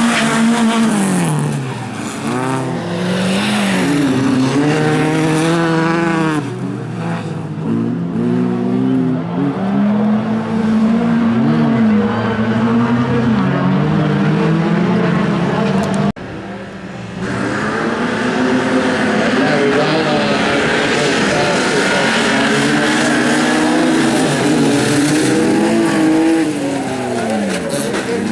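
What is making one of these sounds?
Racing car engines roar and rev loudly.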